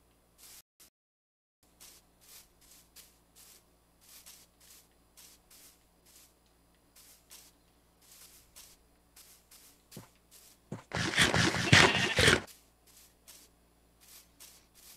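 Footsteps crunch softly on grass at a steady walking pace.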